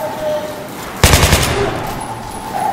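Gunfire cracks in a short, loud burst.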